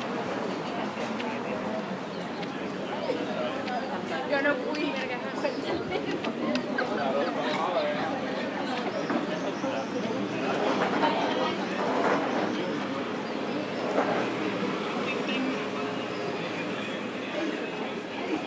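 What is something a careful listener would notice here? Men and women chatter at nearby outdoor tables in a lively murmur.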